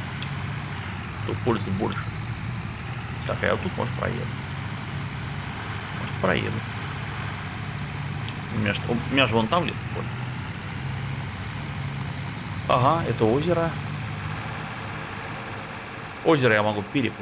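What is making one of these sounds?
A tractor engine hums steadily at low revs.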